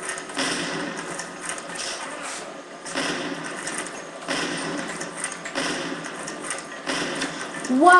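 Rifle shots from a video game ring out through a television speaker.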